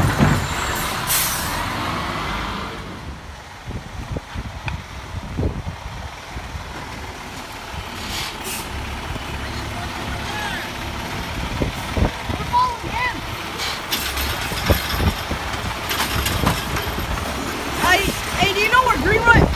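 A garbage truck engine rumbles nearby.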